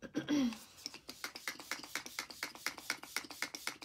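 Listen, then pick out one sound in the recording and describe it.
A spray bottle spritzes rapidly again and again.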